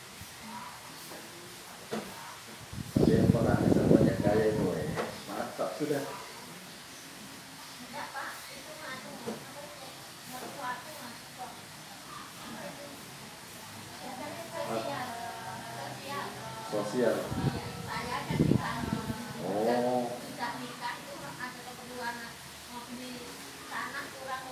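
A man speaks calmly through a microphone, heard at a distance in an open space.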